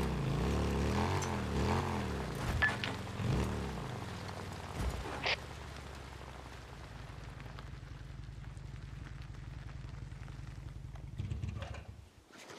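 A motorcycle engine revs and rumbles steadily.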